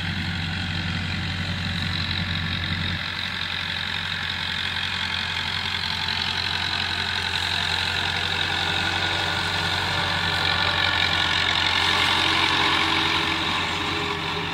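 A tractor's mower whirs, growing louder as it draws near.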